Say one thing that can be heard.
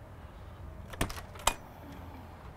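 A vehicle door clicks open.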